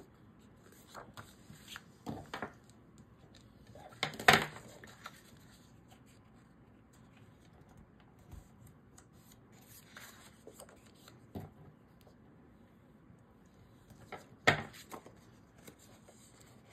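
Paper rustles and slides as hands handle card stock.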